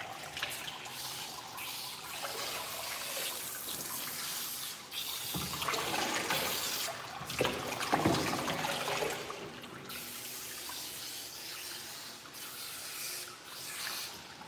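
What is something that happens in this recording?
Hands rub and squish wet fur.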